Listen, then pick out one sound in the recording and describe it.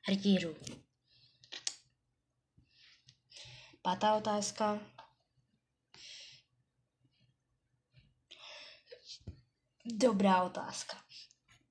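A boy speaks close to a microphone, in short bursts with pauses.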